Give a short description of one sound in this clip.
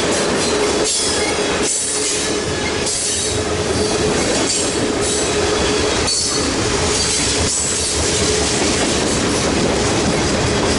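Steel wheels squeal faintly against the rails.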